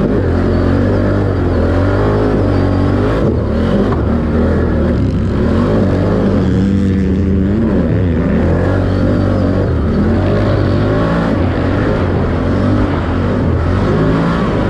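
A dirt bike engine roars and revs up and down close by.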